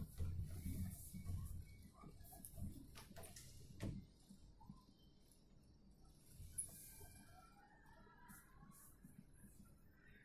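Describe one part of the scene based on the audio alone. A man knocks and rattles a wooden sliding door by hand.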